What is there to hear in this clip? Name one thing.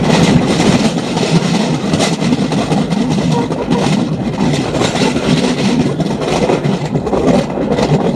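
A motorcycle engine rumbles steadily while riding.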